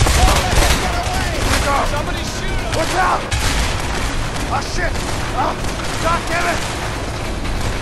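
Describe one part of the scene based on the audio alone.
A young man yells in panic.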